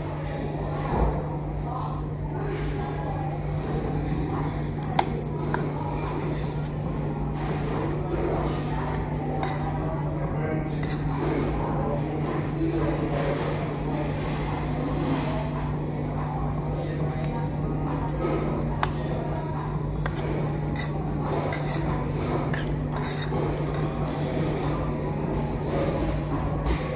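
Metal cutlery clinks and scrapes against a ceramic dish.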